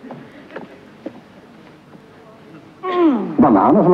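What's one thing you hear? A chimpanzee gulps and slurps a drink.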